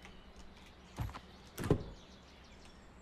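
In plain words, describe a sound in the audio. A wooden door clicks open and thuds.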